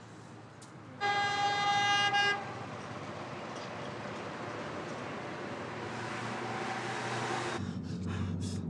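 Traffic passes steadily on a wide road.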